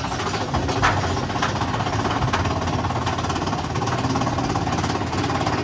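A ride car rumbles and rattles steadily along a track.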